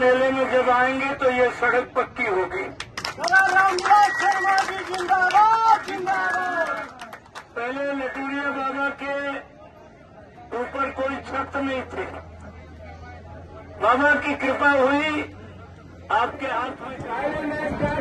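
A man speaks loudly with animation through a microphone and loudspeaker outdoors.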